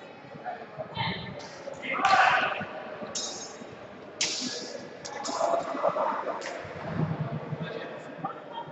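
Blades clash and clatter as fencers fight.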